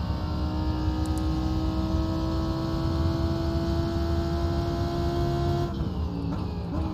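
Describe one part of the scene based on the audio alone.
A racing car engine roars at a steady high pitch, then changes pitch briefly as the car shifts gear.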